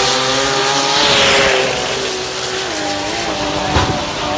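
Tyres screech on the track.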